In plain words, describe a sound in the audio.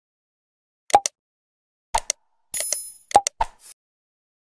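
A mouse button clicks a few times.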